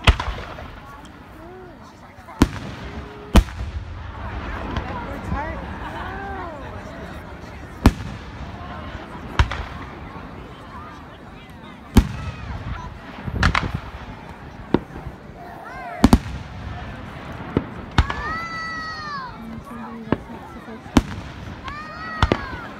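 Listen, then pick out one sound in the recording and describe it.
Fireworks burst with loud, sharp bangs and echoing booms.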